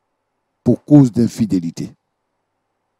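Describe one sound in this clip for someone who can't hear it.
A man speaks calmly and solemnly into a microphone.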